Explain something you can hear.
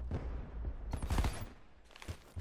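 Automatic gunfire rattles in short bursts.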